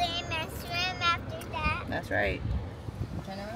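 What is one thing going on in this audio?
A young woman talks playfully close by.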